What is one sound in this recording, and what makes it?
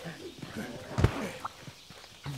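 A heavy metal weapon clanks and swishes.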